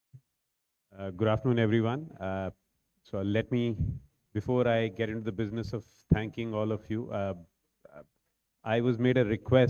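A second man speaks calmly into a microphone over loudspeakers in a large hall.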